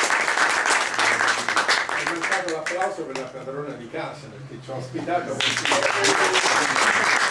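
An elderly man speaks with animation to a small audience.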